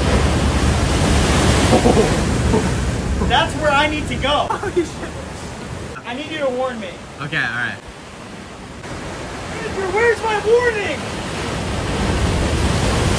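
Heavy waves crash and surge against rocks.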